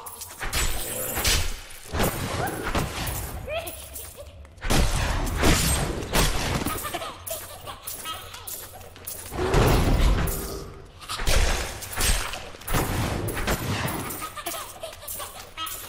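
Heavy blows and crashing magical bursts strike again and again.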